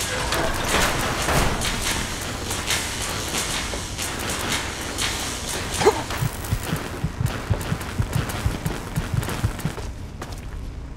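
Electric arcs crackle and buzz loudly.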